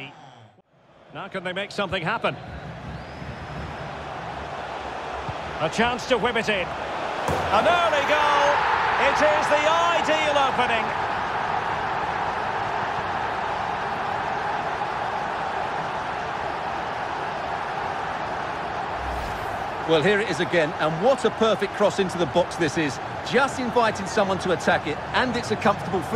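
A stadium crowd roars and cheers loudly.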